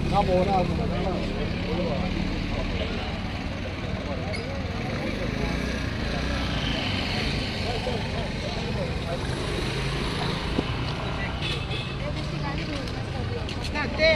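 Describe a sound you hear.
Traffic hums steadily on a nearby road.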